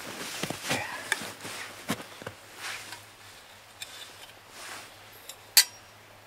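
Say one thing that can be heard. Metal clinks and scrapes as a small stove is handled.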